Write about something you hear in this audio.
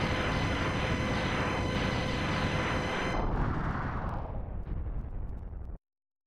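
Loud retro video game explosions boom and crackle repeatedly, then fade away.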